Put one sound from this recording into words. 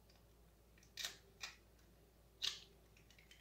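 An egg cracks against a bowl's rim.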